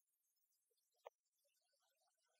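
A metal bucket clanks on a floor.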